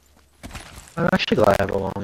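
A young man speaks loudly with animation, close to a microphone.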